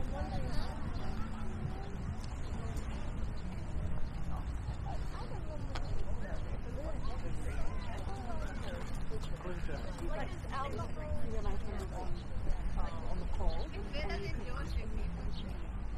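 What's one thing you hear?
Adults chatter nearby in casual voices.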